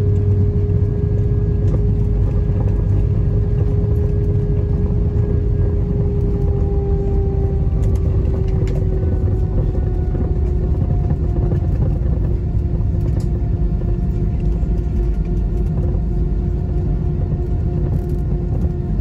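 Landing gear rumbles over the runway.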